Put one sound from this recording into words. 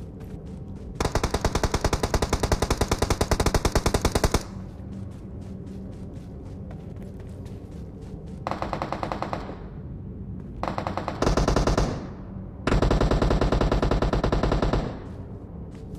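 An automatic rifle fires in rapid bursts, close by.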